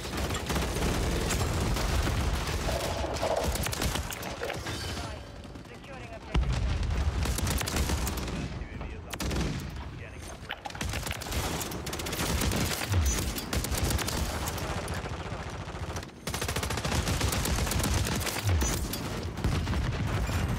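Rapid gunfire crackles in quick bursts.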